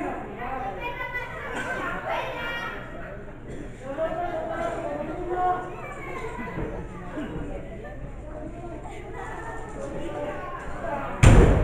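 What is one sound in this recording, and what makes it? Wrestlers' bodies thud onto the ring mat.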